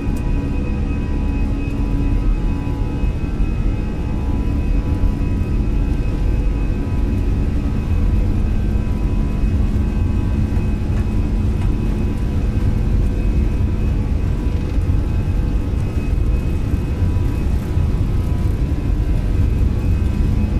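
Jet engines hum steadily with a low rumble.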